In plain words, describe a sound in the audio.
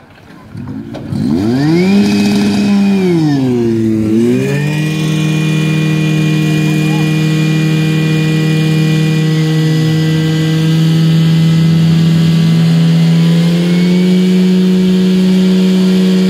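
A portable fire pump engine revs up, then runs at high speed.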